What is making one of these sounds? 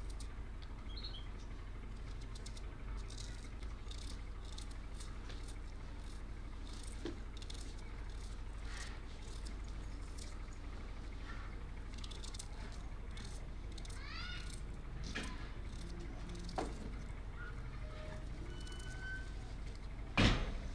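A knife scrapes and clicks softly as a vegetable is peeled by hand.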